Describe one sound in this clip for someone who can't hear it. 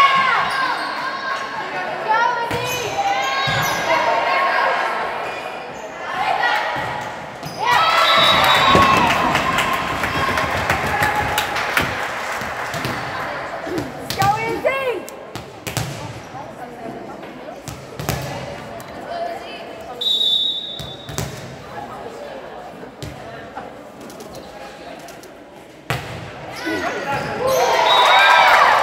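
A volleyball thuds off hands and arms.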